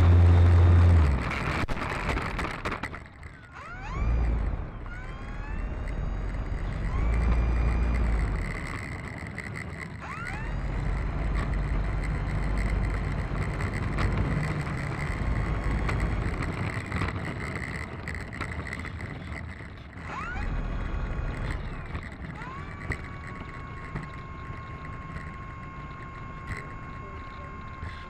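Small wheels rumble over rough asphalt.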